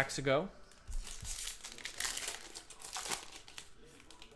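A foil card pack tears open and crinkles.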